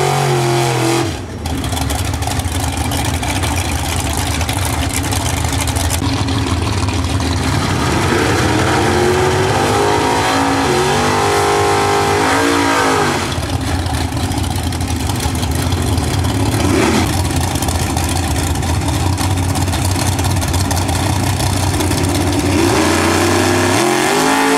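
A loud drag racing engine rumbles and idles roughly.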